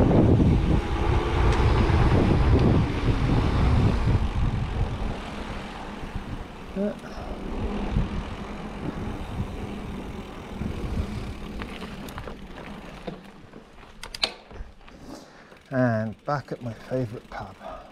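Bicycle tyres roll and hum on tarmac.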